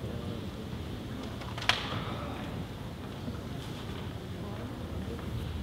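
A man speaks quietly through a face mask, a little way off.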